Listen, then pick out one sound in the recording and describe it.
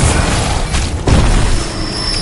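A gunshot bangs sharply.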